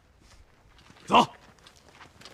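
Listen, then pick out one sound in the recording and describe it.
A young man says a short, firm word.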